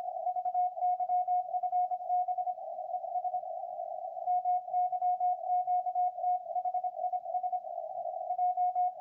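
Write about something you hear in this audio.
Static hisses from a radio receiver.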